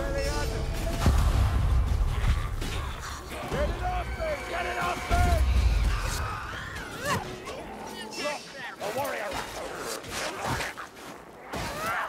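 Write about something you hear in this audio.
Swords slash and strike flesh in a fast melee.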